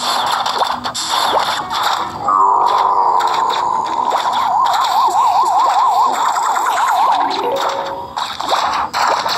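A video game's upbeat music plays throughout.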